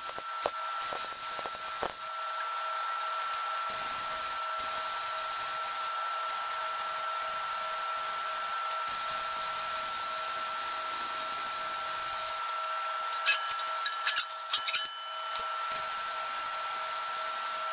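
An arc welder crackles and hisses.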